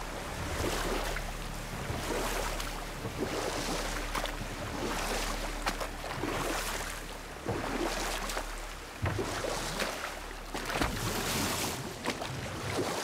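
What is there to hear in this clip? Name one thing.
Oars splash through water in a steady rowing rhythm.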